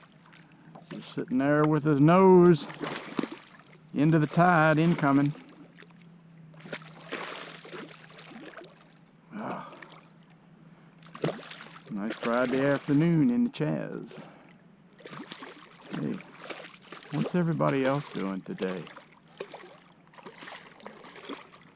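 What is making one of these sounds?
A fish splashes and thrashes in shallow water close by.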